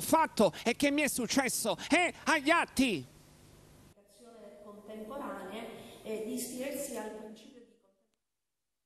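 A woman speaks steadily into a microphone.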